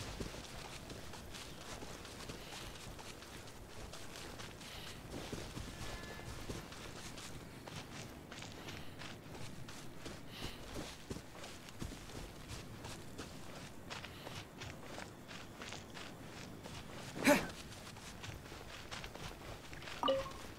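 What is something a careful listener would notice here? Footsteps run quickly over grass and stone.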